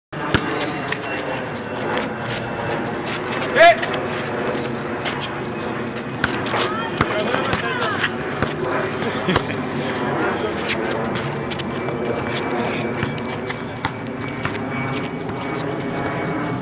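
Young men shout and talk excitedly outdoors at night.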